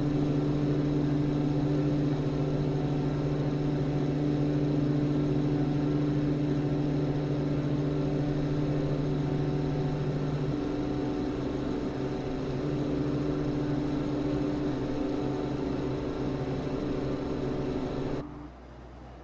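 Twin propeller engines drone steadily and loudly.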